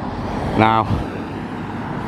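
A car drives along a street nearby.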